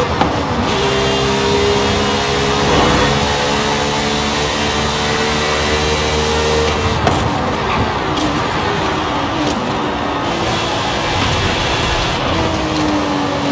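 A racing car engine roars at high revs, then drops as the car slows.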